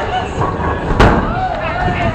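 A bowling ball thuds onto a wooden lane.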